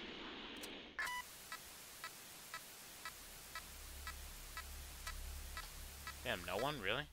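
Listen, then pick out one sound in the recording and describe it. A radar device beeps in a steady, quick rhythm.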